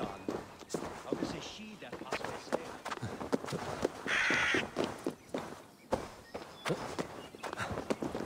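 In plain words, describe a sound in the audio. Footsteps scrape and thud on rock and dirt.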